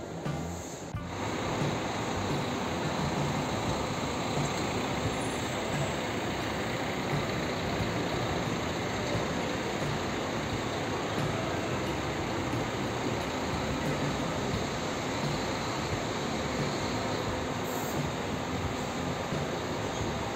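A bus engine idles nearby with a steady rumble.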